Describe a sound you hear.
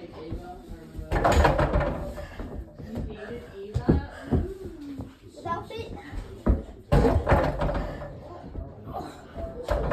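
A young boy's bare feet thump on the floor as he lands from jumps.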